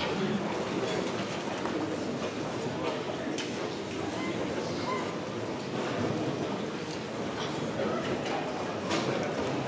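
A large crowd of adults chatters and murmurs in a big echoing hall.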